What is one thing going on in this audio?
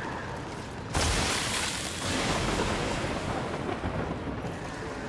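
A fiery blade whooshes through the air with a roar.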